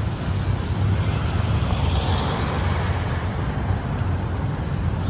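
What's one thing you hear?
A car drives past nearby.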